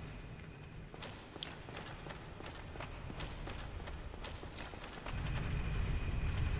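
Armoured footsteps clank on a stone floor.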